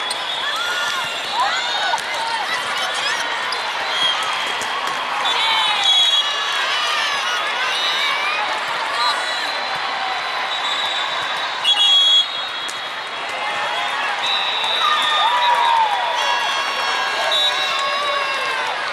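Young women shout and call out to each other on the court.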